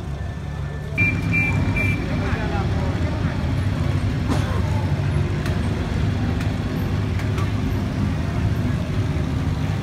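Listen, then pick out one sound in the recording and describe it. Old car engines putter and rumble by.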